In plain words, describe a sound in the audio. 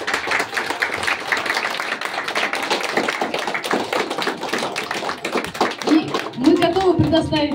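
A crowd applauds loudly in a room.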